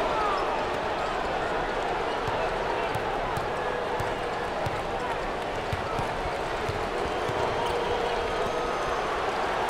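A crowd cheers and murmurs steadily in a large echoing arena.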